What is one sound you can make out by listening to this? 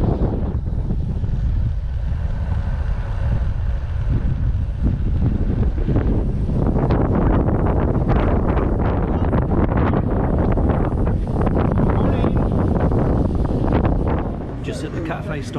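Wind rumbles loudly past the microphone outdoors.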